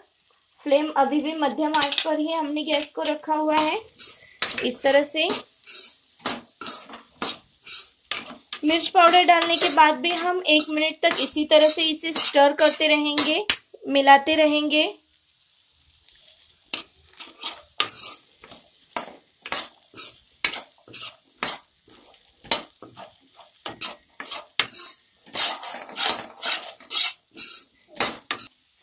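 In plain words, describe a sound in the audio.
A metal spatula scrapes and clatters against a frying pan.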